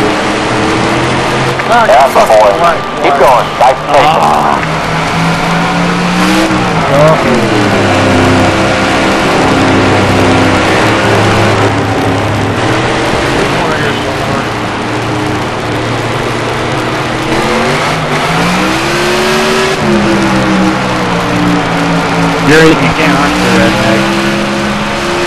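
A race car engine roars steadily, rising and falling in pitch as it shifts.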